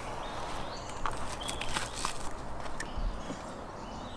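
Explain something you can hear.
Crusty flatbread crackles and tears apart in hands.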